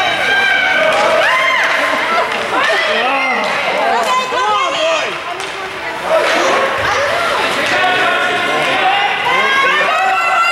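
A crowd of spectators cheers and shouts in an echoing arena.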